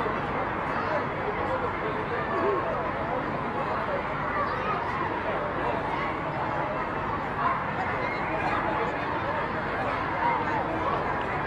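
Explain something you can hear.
A large crowd of men and women chatters and murmurs loudly all around.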